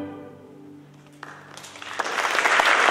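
An orchestra holds a final chord in a large hall.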